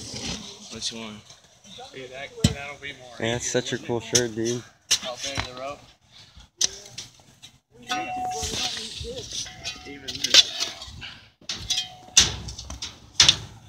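Shovels scrape and dig into loose dirt.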